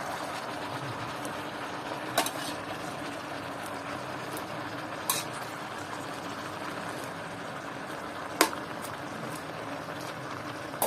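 Cabbage sizzles steadily in a hot pan.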